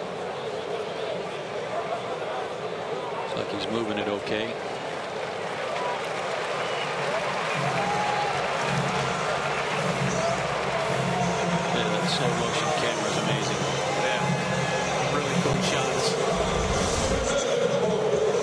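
A large stadium crowd murmurs steadily in the open air.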